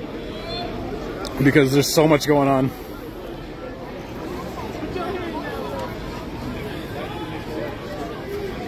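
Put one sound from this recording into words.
A crowd of people talks and calls out outdoors.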